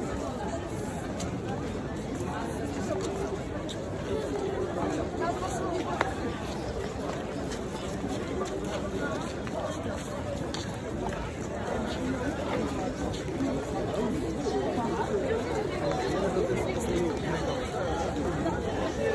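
A large crowd of men and women chatters outdoors.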